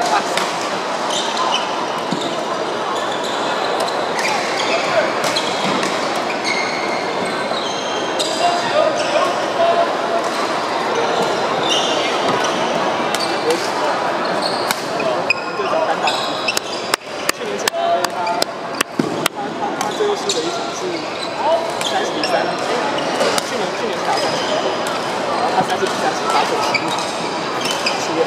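Shoes squeak sharply on a wooden court.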